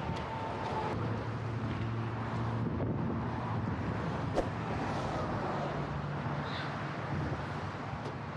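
A plastic tarp rustles and crinkles.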